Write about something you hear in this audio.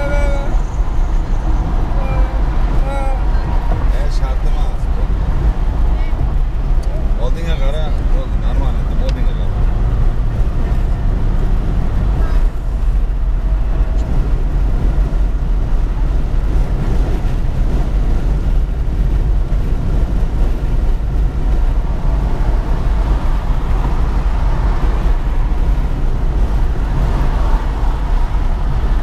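Passing traffic whooshes by on the highway.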